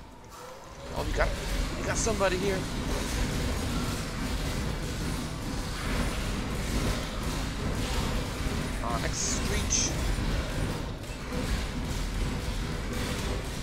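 Magic blasts and blows crash in a noisy fight.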